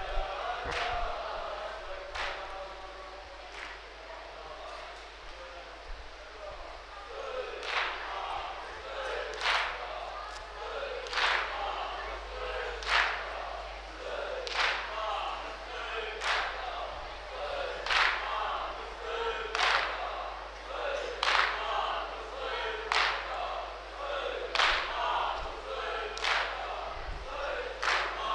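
A young man sings a mournful chant into a microphone, heard through loudspeakers.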